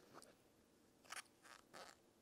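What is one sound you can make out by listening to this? A person sips and gulps a drink close by.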